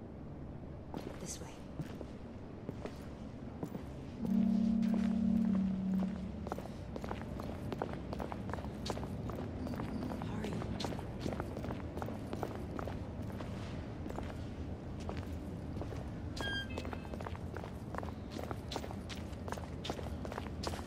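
Footsteps crunch on rough ground at a walking pace.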